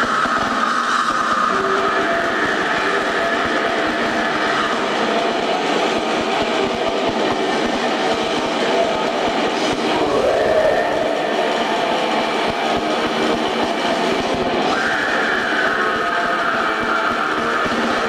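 A rock band plays loudly.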